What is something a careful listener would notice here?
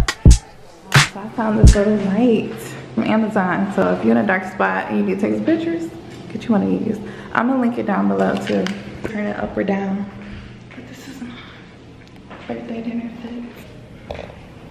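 A young woman talks close by in a lively, chatty way.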